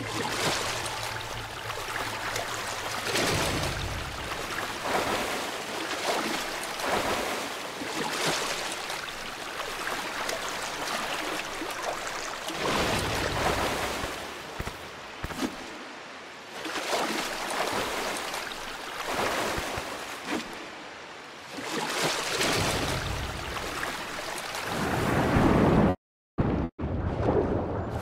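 Water splashes and sloshes as a figure swims.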